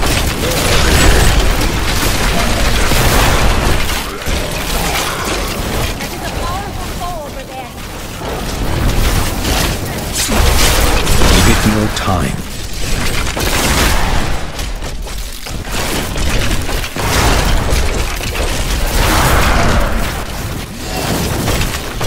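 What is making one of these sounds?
Spells crackle and blast amid constant fighting.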